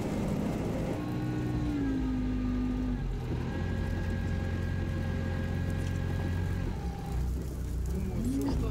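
An off-road vehicle's engine rumbles and strains as it drives over rough ground nearby.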